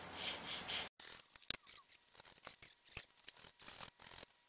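A small tool scrapes and taps lightly against wood.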